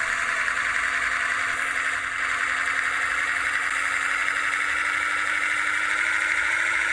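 A bus engine drones steadily and slowly rises in pitch as the bus speeds up.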